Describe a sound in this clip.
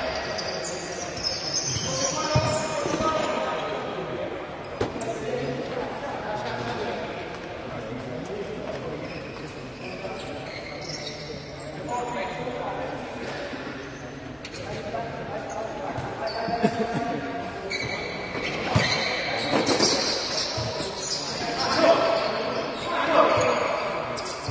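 A crowd of spectators chatters and calls out in a large echoing hall.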